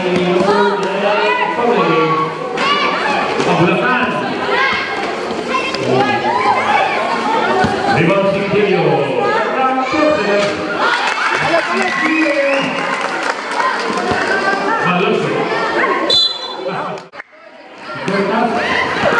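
A large crowd of spectators chatters and shouts loudly.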